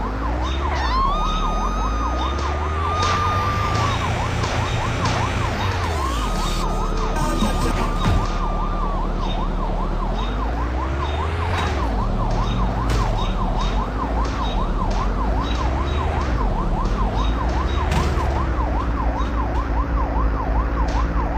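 Tyres screech as a car skids.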